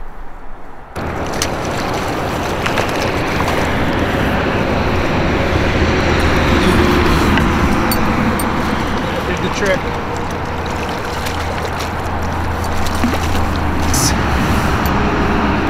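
Wind blows steadily across open water outdoors.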